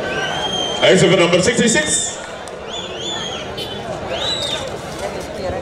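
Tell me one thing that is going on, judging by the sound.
Shrill whistles blow from the crowd.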